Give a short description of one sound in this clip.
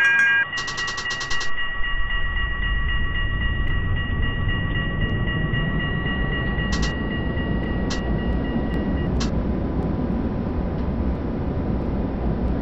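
A tram rumbles along the rails, growing louder as it picks up speed.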